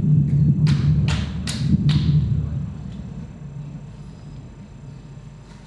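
A pool ball rolls softly across a table.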